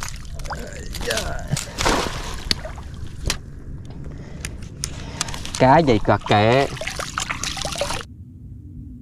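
Water splashes as a net is lifted and shaken.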